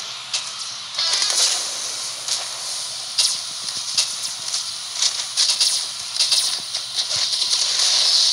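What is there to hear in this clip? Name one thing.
Fiery explosions crackle and burst.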